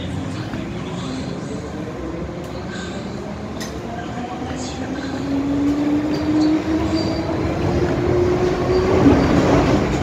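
A train's motor whines, rising slowly in pitch as it speeds up.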